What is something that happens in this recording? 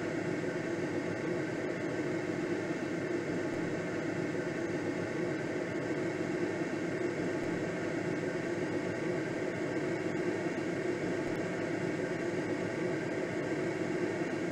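Wind rushes steadily past a gliding aircraft's cockpit.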